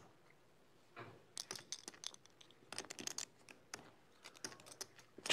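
Poker chips click together softly.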